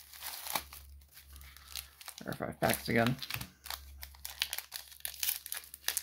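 A foil wrapper crinkles and rustles as it is torn open.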